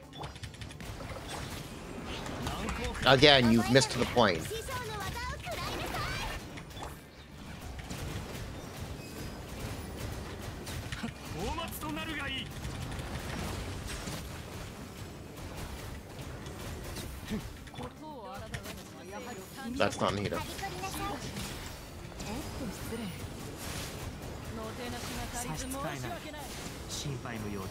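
Game combat effects whoosh and crackle with bursts and impacts.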